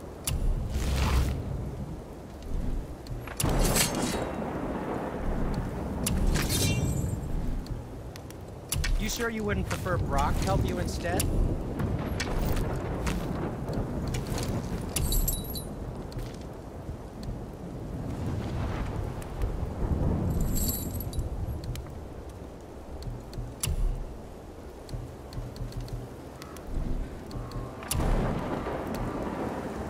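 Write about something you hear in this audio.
Soft menu clicks sound as selections change.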